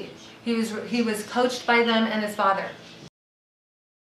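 A woman speaks with emotion, close to a microphone.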